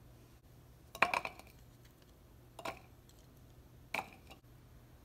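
Garlic cloves drop and knock into a plastic jar.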